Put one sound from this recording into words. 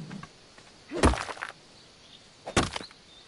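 A pick strikes hard crystal with sharp knocks.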